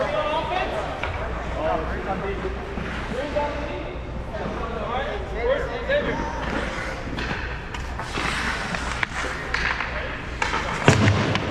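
Ice skates scrape and hiss across ice.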